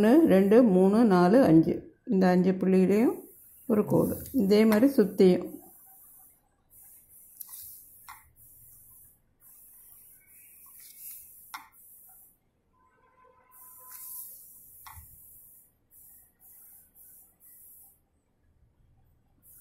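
A felt-tip pen squeaks and scratches softly across paper.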